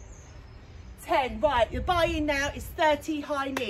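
A young woman speaks to the listener with animation.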